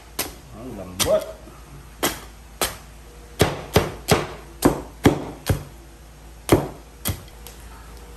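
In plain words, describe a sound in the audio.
The edge of a plate strikes and cracks crispy roast pig skin.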